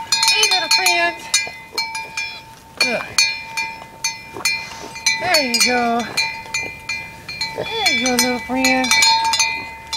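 Goats bleat loudly nearby.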